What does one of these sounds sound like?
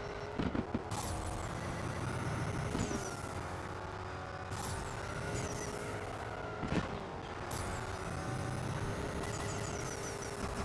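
Tyres screech as a sports car drifts.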